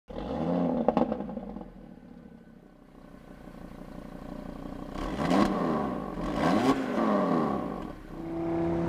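A sports car engine revs sharply up and down.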